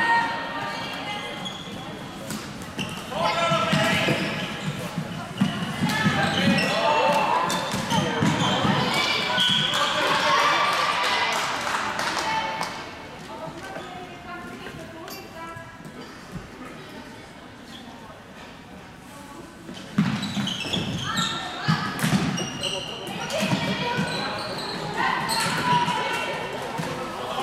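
Floorball sticks clack against a ball and each other.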